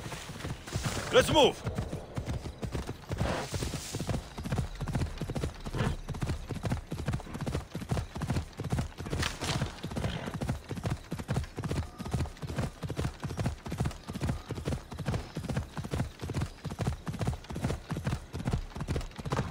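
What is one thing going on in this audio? Horse hooves thud in a fast, steady gallop.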